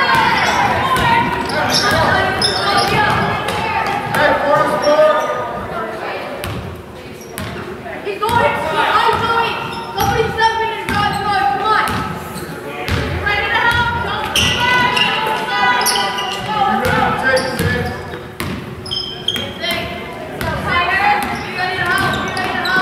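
Adult spectators chat nearby in an echoing hall.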